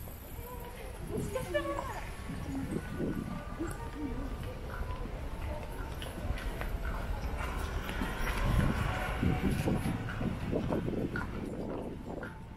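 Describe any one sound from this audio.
Distant voices of passers-by murmur in a quiet street.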